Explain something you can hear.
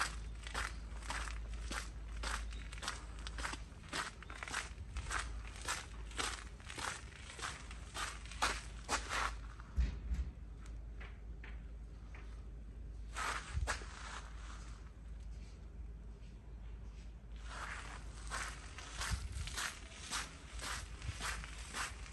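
Footsteps crunch steadily on gravel outdoors.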